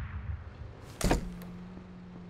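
A wooden door swings shut with a knock.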